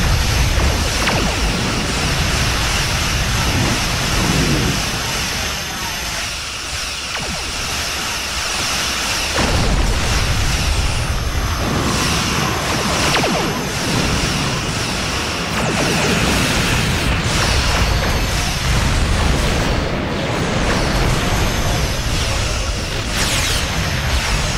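Laser weapons fire in rapid bursts with sci-fi zaps.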